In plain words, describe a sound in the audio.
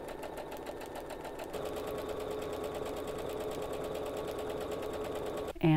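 A sewing machine stitches rapidly with a steady whirring hum.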